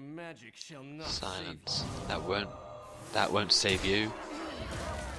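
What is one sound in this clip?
A magical spell bursts with a loud shimmering whoosh.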